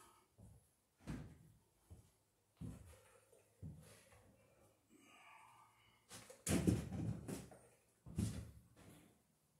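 Debris knocks and clatters on a wooden floor.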